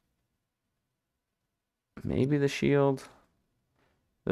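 A short game menu chime sounds as a different choice is highlighted.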